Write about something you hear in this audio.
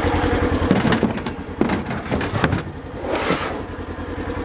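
A heavy concrete block thuds and scrapes onto a hard plastic truck bed.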